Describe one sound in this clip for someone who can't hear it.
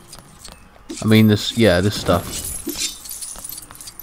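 Small plastic pieces clatter as an object breaks apart.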